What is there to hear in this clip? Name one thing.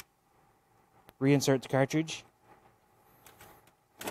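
A plastic cartridge clicks into place in a machine.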